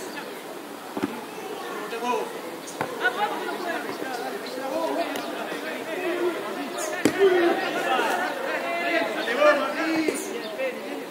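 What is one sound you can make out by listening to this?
A foot kicks a football with a dull thud.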